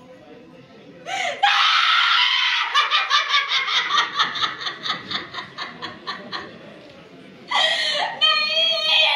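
A woman wails and sobs loudly nearby.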